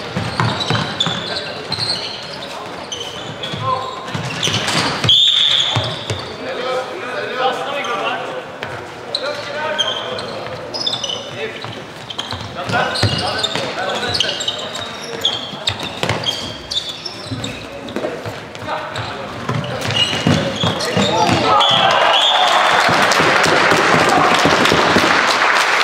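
Sticks clack against a ball, echoing in a large hall.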